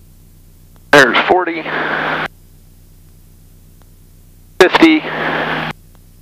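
A man speaks briefly over a headset radio, crackly and close.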